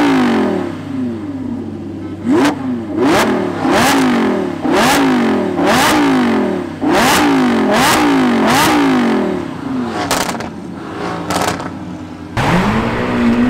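A sports car engine revs hard over and over while idling.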